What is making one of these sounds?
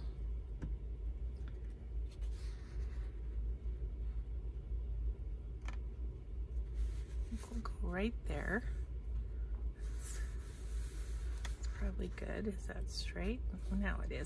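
Paper pages rustle softly as they are turned.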